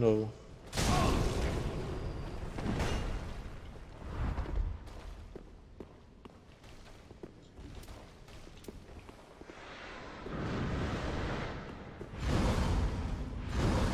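Swords clash and swish in loud bursts.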